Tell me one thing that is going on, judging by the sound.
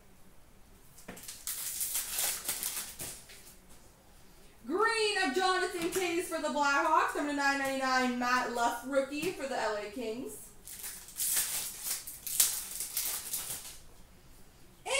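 Cards and foil wrappers rustle and crinkle in someone's hands.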